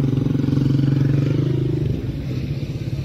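A motorcycle engine rumbles close by as it passes.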